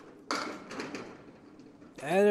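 Candlepins crash and clatter onto a wooden lane.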